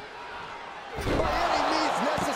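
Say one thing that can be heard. A heavy body thuds into a wooden box.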